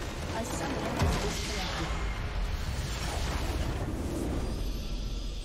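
A huge crystal structure explodes with a deep rumbling blast.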